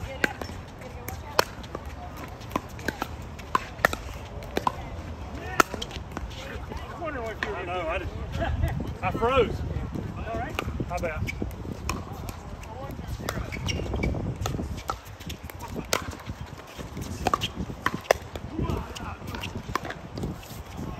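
Paddles pop sharply against a plastic ball in quick rallies, outdoors.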